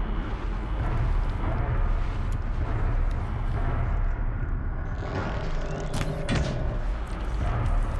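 An arrow whooshes away.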